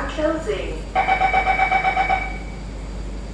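A door chime beeps rapidly.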